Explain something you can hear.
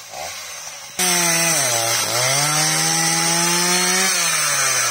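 A chainsaw cuts into a tree trunk, its engine dropping in pitch under load and then recovering.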